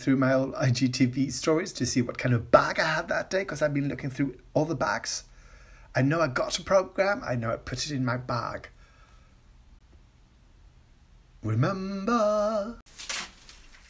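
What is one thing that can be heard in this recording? A middle-aged man talks with animation close to a phone microphone.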